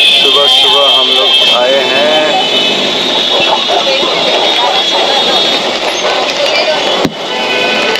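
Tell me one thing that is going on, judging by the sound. A busy street bustles with traffic and crowd noise, heard from inside a moving vehicle.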